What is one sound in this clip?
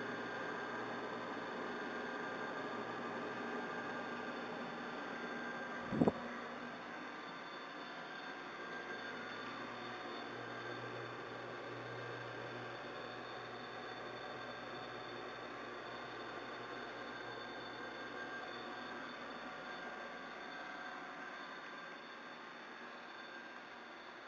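Flames roar and flutter steadily in a stove.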